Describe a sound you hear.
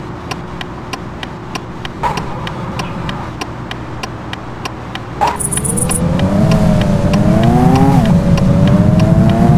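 A car engine hums low, then revs up and rises in pitch.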